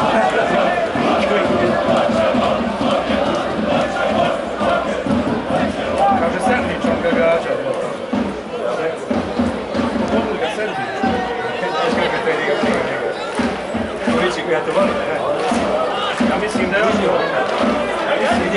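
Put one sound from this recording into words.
Players shout to each other across a football pitch outdoors.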